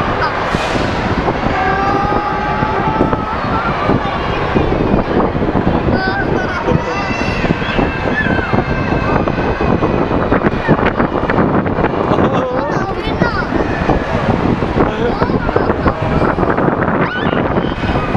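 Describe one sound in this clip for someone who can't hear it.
A fairground ride whirs and rattles steadily.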